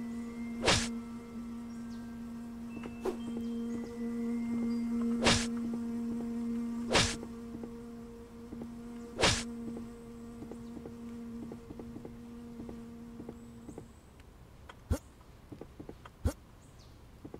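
Sharp slashing hits strike now and then.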